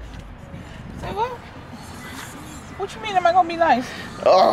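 A woman speaks from inside a car.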